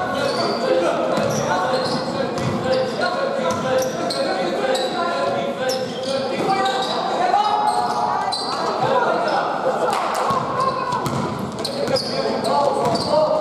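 A basketball bounces on the floor.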